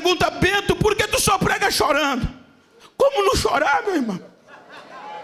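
A man speaks forcefully and loudly through a microphone in an echoing hall.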